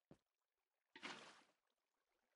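Water splashes softly as it is poured out.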